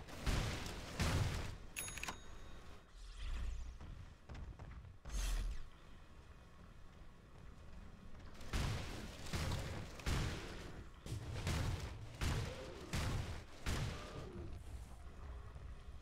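Spell effects whoosh and crackle during fights.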